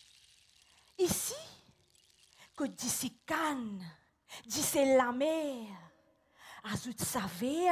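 A woman speaks expressively through a head microphone, in dramatic bursts.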